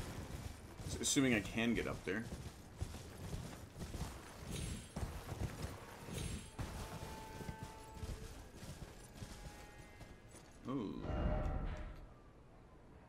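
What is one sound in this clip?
A middle-aged man speaks with animation, close to a microphone.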